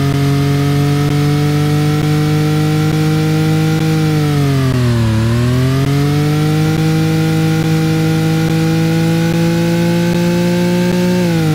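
A racing car engine roars steadily, dipping in pitch around a bend and then climbing again.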